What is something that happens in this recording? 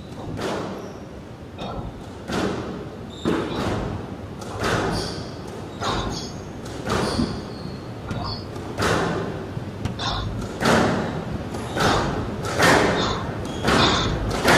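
A squash ball is struck by rackets and smacks against the walls of a court.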